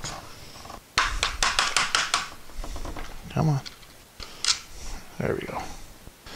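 Plastic parts click and rattle as they are pulled apart.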